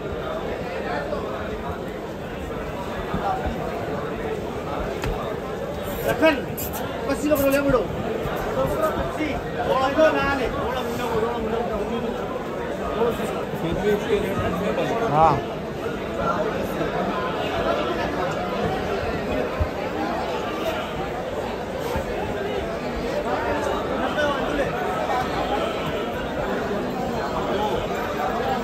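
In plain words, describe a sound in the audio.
A crowd of people chatters steadily, echoing under a large roof.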